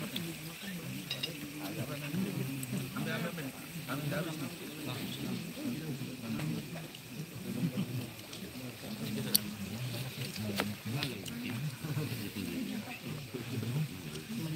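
Several men talk and chatter close by, outdoors.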